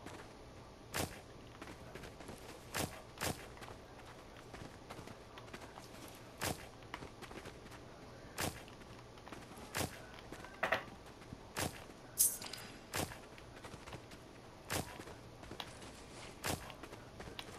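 A garden tool strikes the soil again and again in short sharp knocks.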